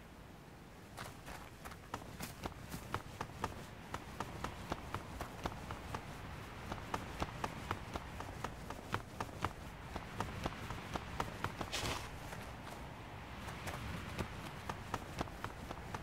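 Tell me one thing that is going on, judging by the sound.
Quick footsteps patter over rocky ground.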